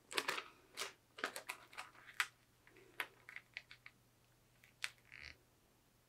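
Plastic film crinkles and rustles under fingers.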